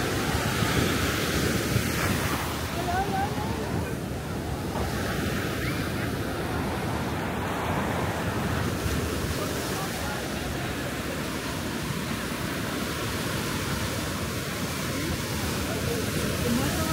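Many people chatter in the distance outdoors.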